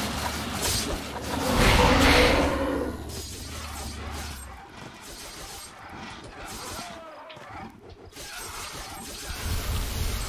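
A sword slashes and strikes a creature.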